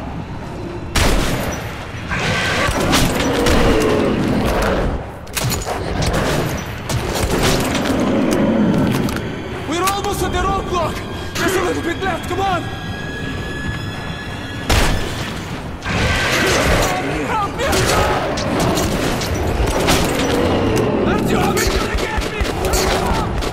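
Guns fire in rapid bursts of loud shots.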